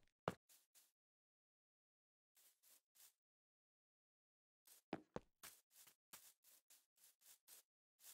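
Footsteps patter on grass in a video game.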